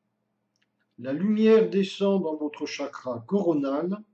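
An older man speaks calmly and slowly.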